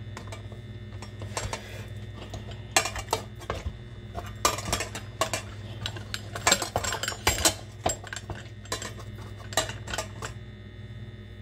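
A hand-cranked metal food mill scrapes and squishes tomatoes against a metal bowl.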